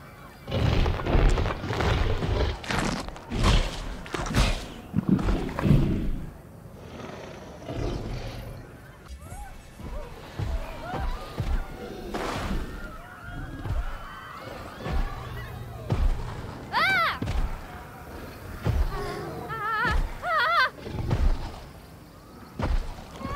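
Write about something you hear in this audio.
Heavy dinosaur footsteps thud on sand.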